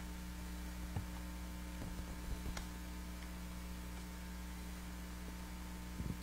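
Crutches tap on a hard floor.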